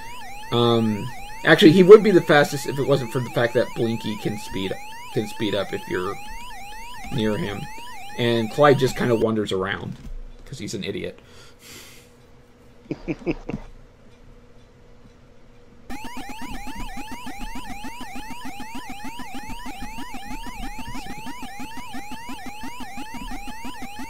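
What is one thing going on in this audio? An electronic arcade siren warbles up and down steadily.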